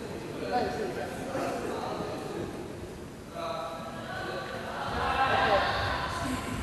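A man speaks calmly to a group in a large echoing hall.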